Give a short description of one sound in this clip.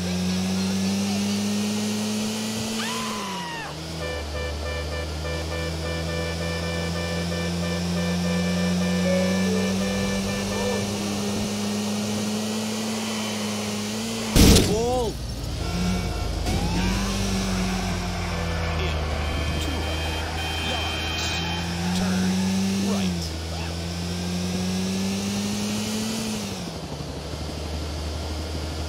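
A car engine hums and revs, rising and falling in pitch.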